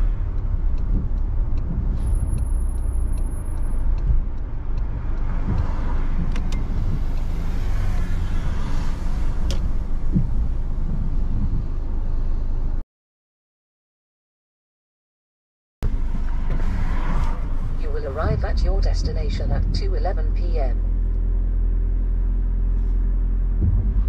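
A car engine hums steadily with road noise inside the cabin.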